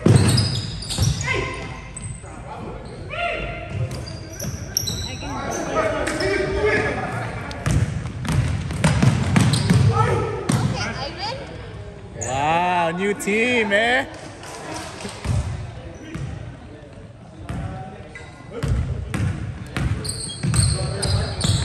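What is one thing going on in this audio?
Young men shout to each other across an echoing gym.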